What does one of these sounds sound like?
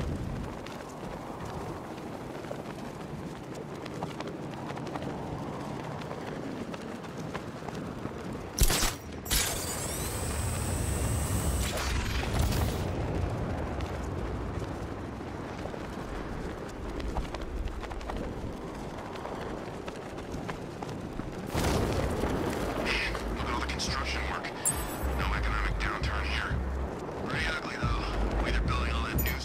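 Wind rushes steadily past while gliding through the air.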